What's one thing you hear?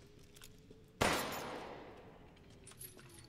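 A pistol fires a single loud shot that echoes and fades.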